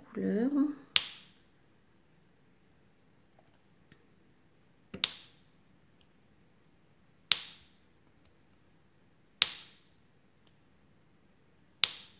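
A pen tool taps sharply against a hard plastic tray every few seconds.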